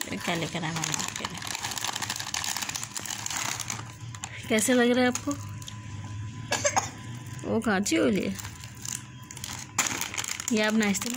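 Plastic snack packets crinkle and rustle.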